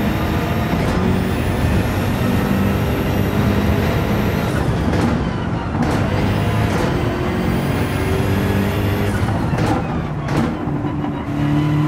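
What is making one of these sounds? A racing car engine roars at high revs, its pitch rising and falling with speed.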